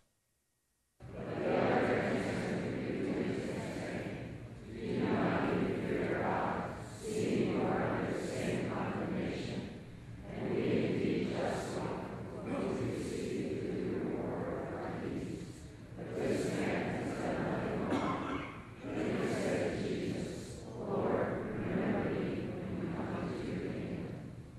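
A man reads aloud slowly.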